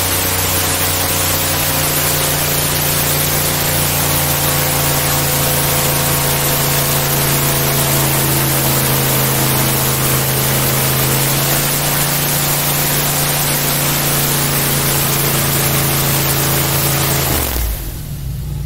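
An airboat engine roars loudly and steadily, then cuts off.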